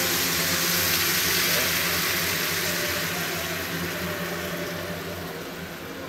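Broth pours with a splashing hiss into a simmering pan.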